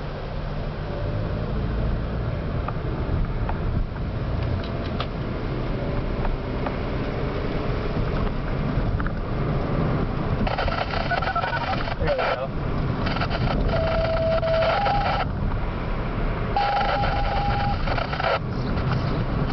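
Wind and tyre noise roar past an open window.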